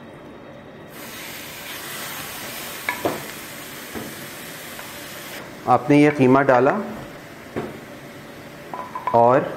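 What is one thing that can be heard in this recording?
Raw meat sizzles in a hot frying pan.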